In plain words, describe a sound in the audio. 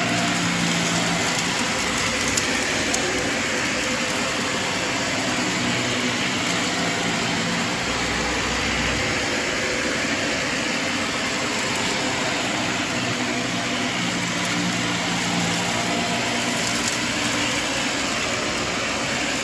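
A vacuum cleaner whirs steadily.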